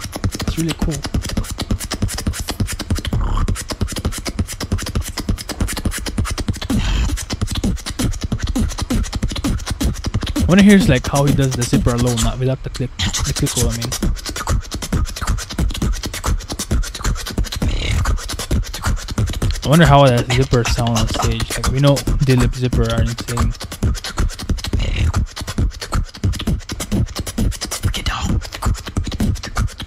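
A young man beatboxes into a microphone with fast, punchy beats.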